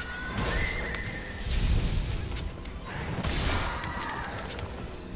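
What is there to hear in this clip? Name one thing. A blade clangs in a fight.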